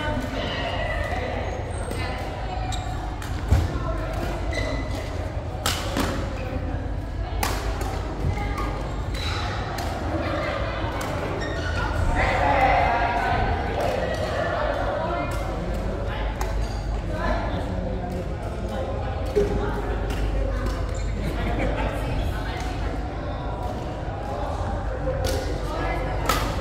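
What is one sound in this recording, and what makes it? Shuttlecocks are struck with sharp pops of rackets, echoing in a large hall.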